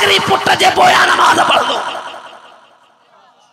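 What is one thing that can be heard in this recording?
A young man chants loudly into a microphone, heard through loudspeakers with echo.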